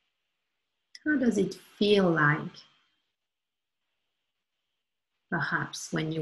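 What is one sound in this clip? A woman speaks slowly and calmly over an online call, with long pauses.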